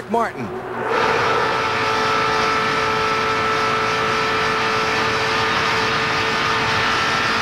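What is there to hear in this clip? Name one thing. A race car engine drones loudly and steadily from close by.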